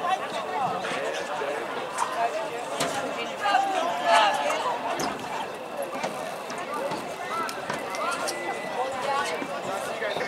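A crowd of spectators chatters and calls out nearby outdoors.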